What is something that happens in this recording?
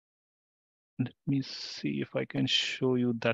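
A man speaks calmly through a microphone on an online call.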